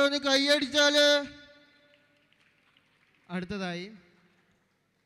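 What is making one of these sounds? A young man does loud vocal imitations through a microphone and loudspeaker, with a slight echo.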